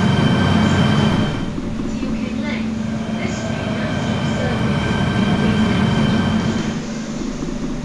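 Train brakes squeal with a steady high whine.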